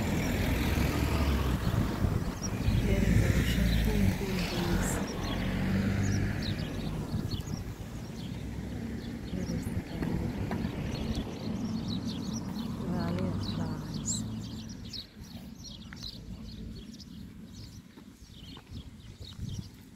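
A middle-aged woman talks with animation close to the microphone.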